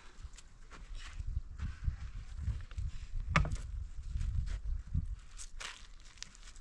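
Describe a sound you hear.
Footsteps crunch and scuff on dry, stony ground.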